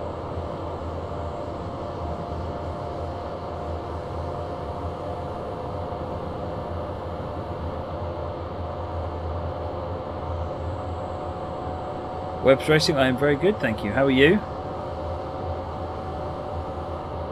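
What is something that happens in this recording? An electric train hums steadily as it rolls along the tracks.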